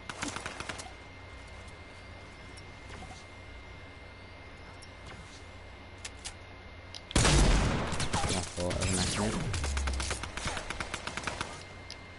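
Building pieces snap into place with rapid clicks.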